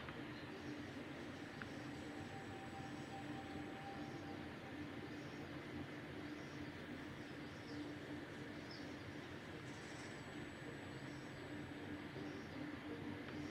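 Soft, eerie music hums steadily.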